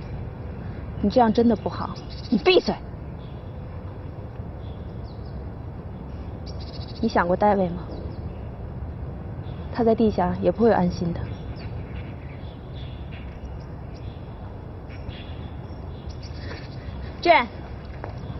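A young woman speaks tensely in short bursts, close by.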